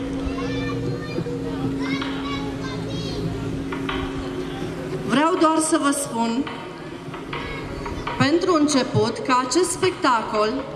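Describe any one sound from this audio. A group of men and women sing a carol loudly through loudspeakers.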